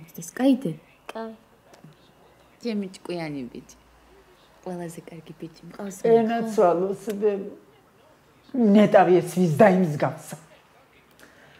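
A young woman speaks softly and tenderly up close.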